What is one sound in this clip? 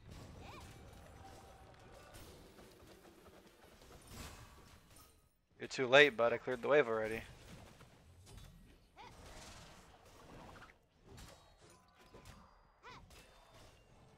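Blades slash and strike with sharp hits in a video game battle.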